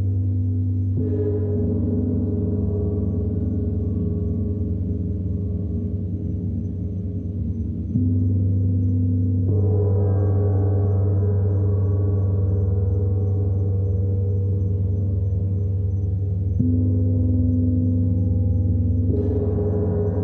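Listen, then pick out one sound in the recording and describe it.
A gong is struck now and then, ringing with bright, shimmering tones.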